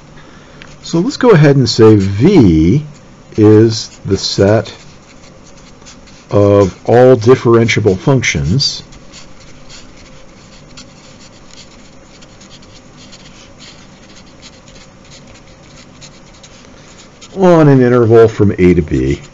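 A marker scratches and squeaks across paper.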